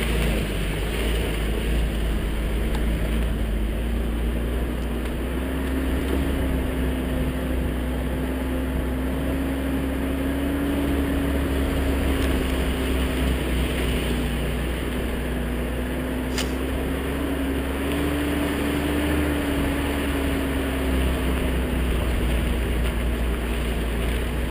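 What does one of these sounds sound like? A vehicle engine hums steadily and rises and falls slightly as it drives.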